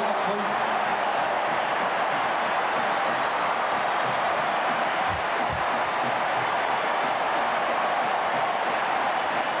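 A huge stadium crowd roars and cheers steadily.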